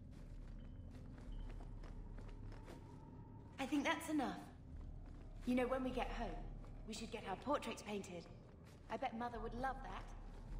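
Footsteps tap on a stone floor in an echoing hall.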